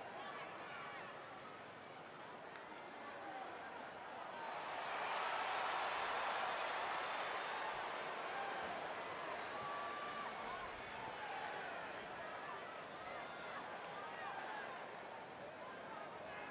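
A large crowd cheers and whistles in a big echoing arena, swelling loudly for a while.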